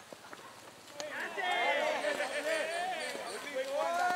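Several men shout and cheer outdoors.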